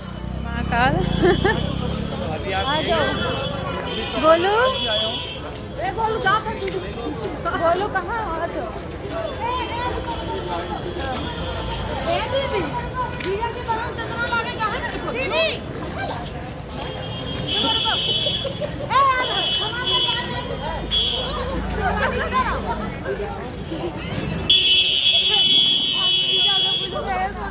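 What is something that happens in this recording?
A young woman talks close up with animation.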